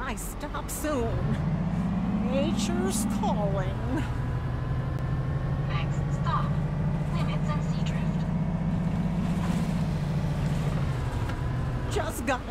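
A bus engine hums low and steady, rising in pitch as it speeds up.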